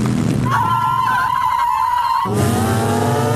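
A woman screams loudly.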